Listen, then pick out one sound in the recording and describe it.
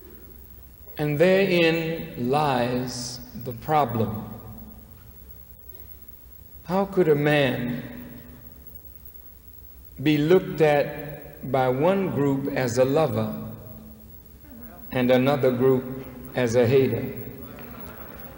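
A man speaks slowly and forcefully into a microphone, with long pauses, in a large echoing hall.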